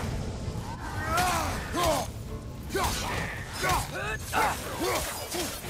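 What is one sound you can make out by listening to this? An axe strikes with heavy, sudden thuds.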